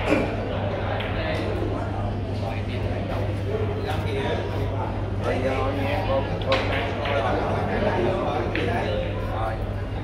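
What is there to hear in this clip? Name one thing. Men and women chatter in the background of an echoing hall.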